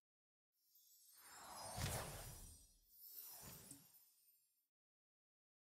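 A shimmering magical whoosh swells and then fades away.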